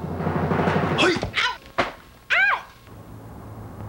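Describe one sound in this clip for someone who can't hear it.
A woman wails and sobs loudly.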